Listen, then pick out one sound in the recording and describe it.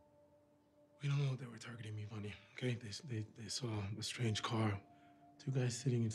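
A young man speaks quietly and earnestly, close by.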